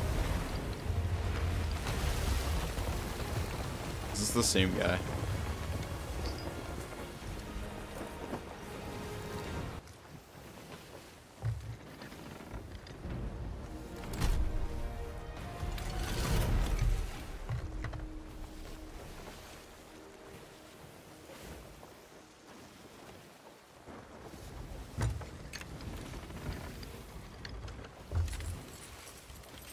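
Rough sea waves crash and surge around a wooden ship.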